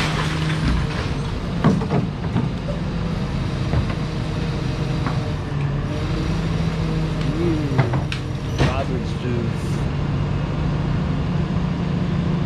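A garbage truck's engine rumbles steadily nearby.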